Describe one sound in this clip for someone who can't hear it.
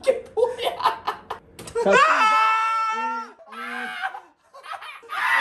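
Young men laugh loudly and hysterically close by.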